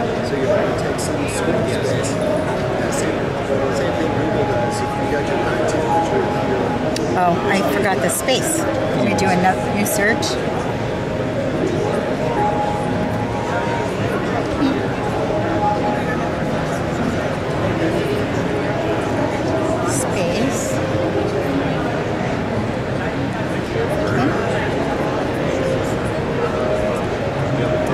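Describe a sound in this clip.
Fingertips tap lightly on a glass touchscreen.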